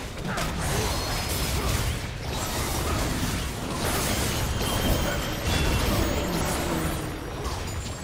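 Fantasy battle sound effects burst and clash in quick succession.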